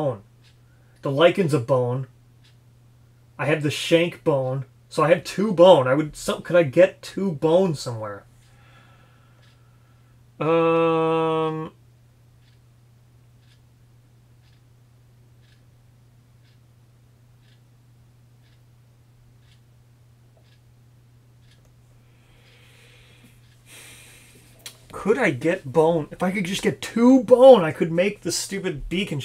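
A young man talks calmly and close to a microphone, pausing to think.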